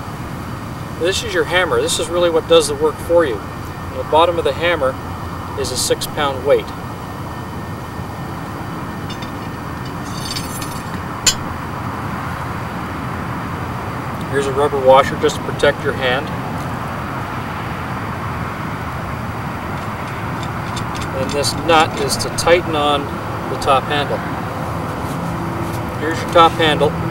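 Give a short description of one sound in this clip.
A man talks calmly and clearly outdoors.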